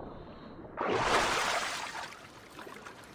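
Water splashes loudly as a swimmer breaks the surface.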